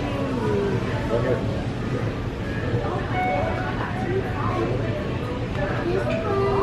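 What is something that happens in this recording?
Men, women and children chat indistinctly nearby in a busy indoor space.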